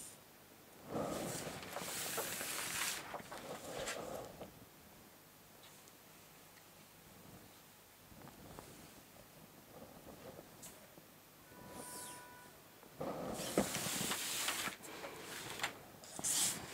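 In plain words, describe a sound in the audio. A ruler slides and scrapes across paper.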